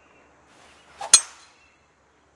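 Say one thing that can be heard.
A golf driver strikes a ball with a sharp crack.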